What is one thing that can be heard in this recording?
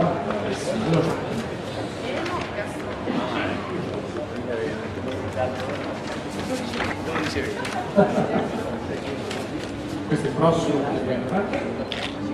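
People chatter in a crowd nearby.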